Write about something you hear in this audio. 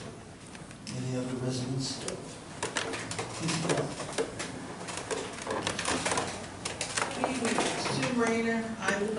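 A man speaks into a microphone over loudspeakers in an echoing room.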